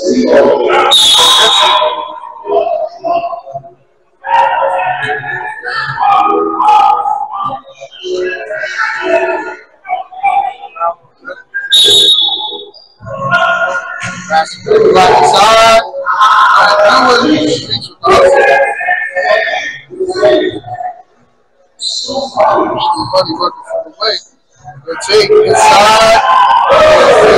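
Men shout and call out across an echoing gym.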